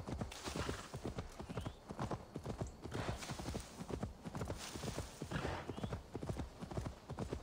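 Leaves and grass rustle as a horse runs through them.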